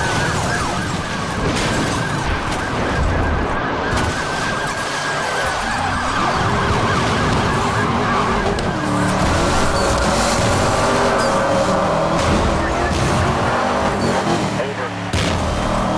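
Police sirens wail.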